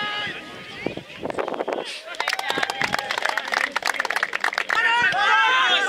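A crowd of spectators cheers outdoors.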